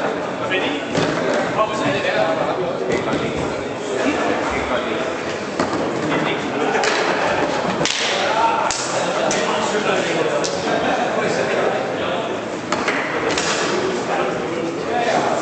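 Foosball rods rattle and a ball knocks against the table's walls.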